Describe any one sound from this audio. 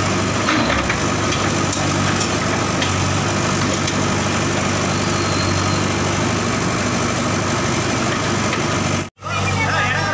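Concrete walls crack and crumble as rubble falls.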